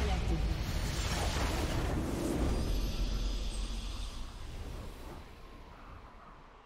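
A deep magical blast booms and slowly fades away.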